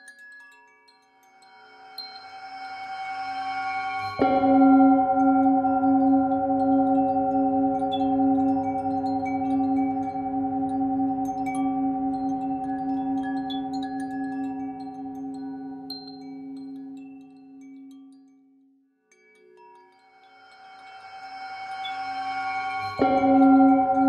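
A metal singing bowl hums and swells as a mallet is rubbed around its rim.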